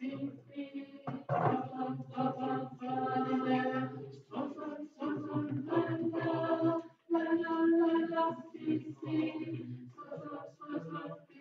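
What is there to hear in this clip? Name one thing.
A group of young people sings together, heard through an online call.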